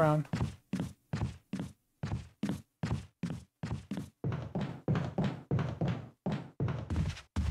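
Footsteps thud up wooden stairs.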